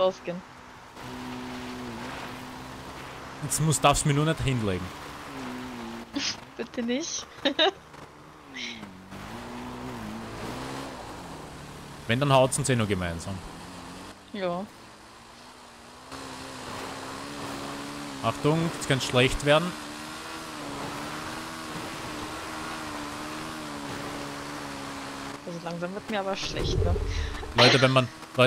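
A motorbike engine hums and revs steadily.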